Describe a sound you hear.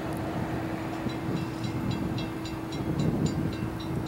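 A crossing bell rings rapidly.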